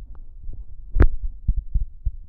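A baseball bat cracks sharply against a ball.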